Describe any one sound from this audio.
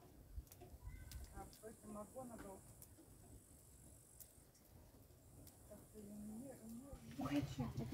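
A fire crackles softly.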